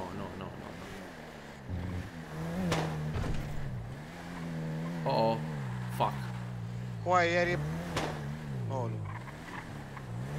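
A car engine hums and revs as a car drives.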